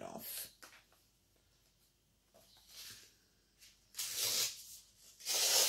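Paper rustles and slides against paper.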